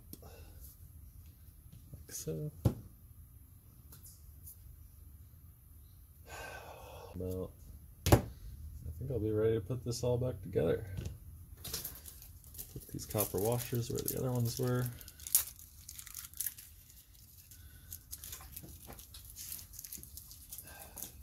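Small metal parts click and clatter as they are handled.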